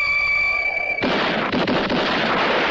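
Gunshots crack in a rapid, noisy burst.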